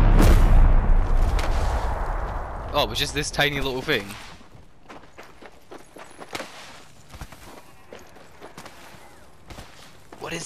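Footsteps crunch quickly over gravel.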